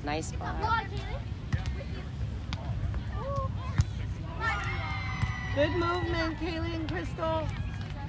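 Young girls call out and shout to each other outdoors.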